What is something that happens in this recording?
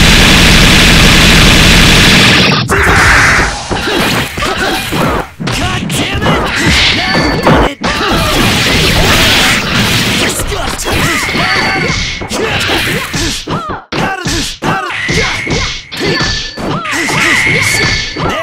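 Punches and kicks land in rapid, sharp smacking hits.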